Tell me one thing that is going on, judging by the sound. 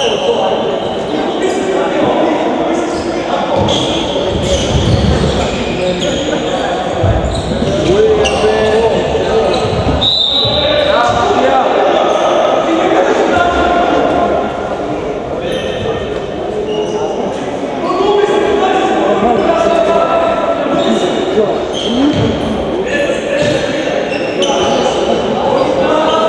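A handball bounces on the floor.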